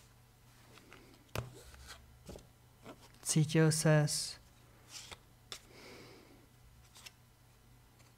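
Playing cards riffle and tap as they are shuffled.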